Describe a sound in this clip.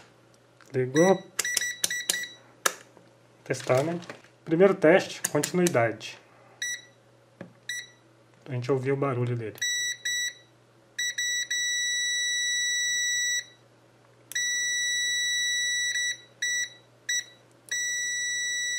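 An electronic meter beeps with high tones, some short, some held for seconds.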